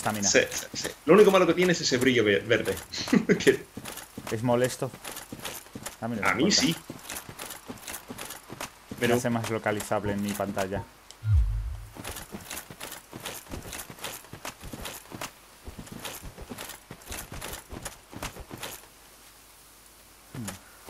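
Armoured footsteps clank steadily on rough ground.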